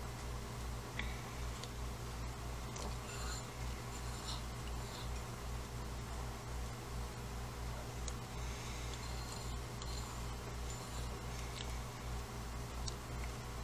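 A metal palette knife scrapes and taps softly on a ceramic plate.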